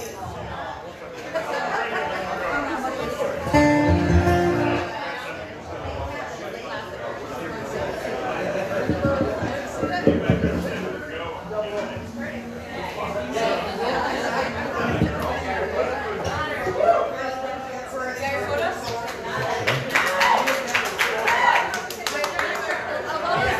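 An acoustic guitar is strummed through a loudspeaker.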